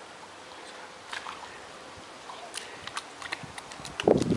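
A tiger laps water.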